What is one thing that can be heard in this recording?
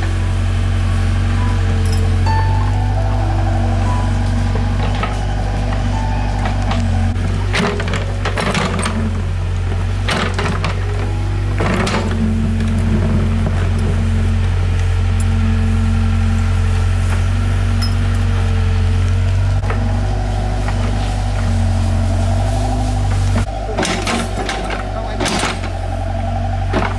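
An excavator engine rumbles steadily nearby.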